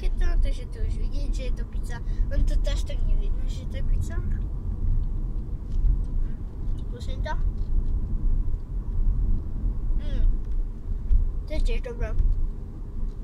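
A young girl talks casually close by.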